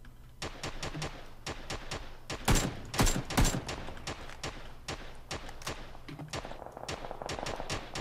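Rifle shots crack sharply and rapidly, close by and farther off.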